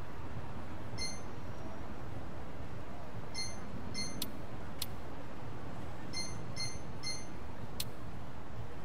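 Short electronic menu beeps chime as selections change.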